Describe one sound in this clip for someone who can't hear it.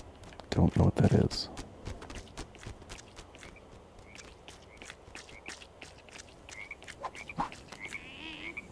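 Small footsteps patter quickly on hard ground.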